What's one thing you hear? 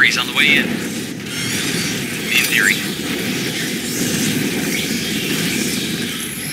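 A flamethrower roars steadily.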